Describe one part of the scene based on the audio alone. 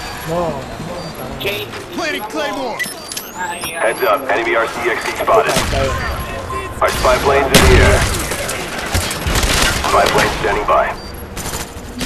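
Gunfire bursts out in short rattling volleys.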